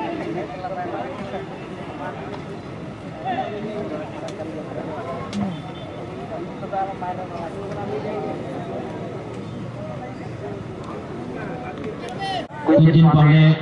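A large crowd of spectators chatters outdoors.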